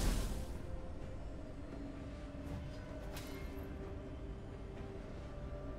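Game characters clash with magical spell effects and hits.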